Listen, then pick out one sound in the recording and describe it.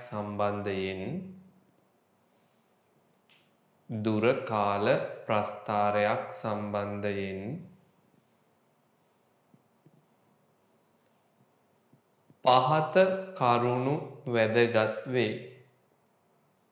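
A young man speaks calmly and clearly into a close microphone, in short phrases with pauses.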